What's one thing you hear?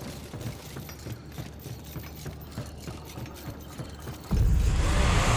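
A game character's footsteps patter quickly on wooden steps and stone.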